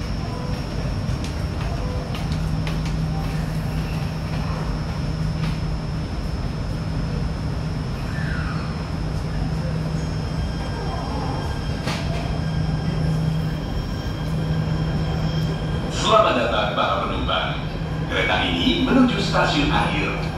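A train rumbles and hums steadily while moving.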